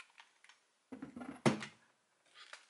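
Plastic toy parts click and clack together.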